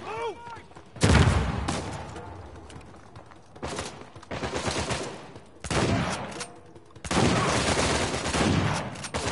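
Shotgun blasts boom loudly.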